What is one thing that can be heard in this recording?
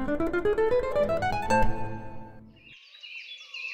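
An acoustic guitar is fingerpicked.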